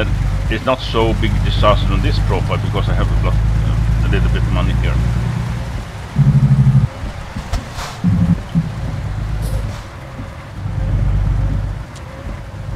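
Windscreen wipers sweep back and forth.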